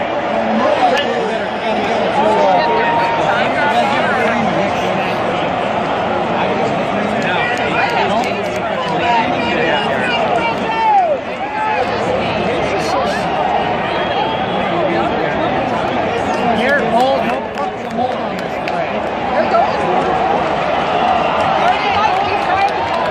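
A large stadium crowd roars and cheers loudly all around.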